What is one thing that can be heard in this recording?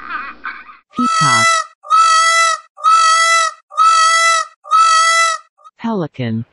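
A peacock gives loud repeated calls.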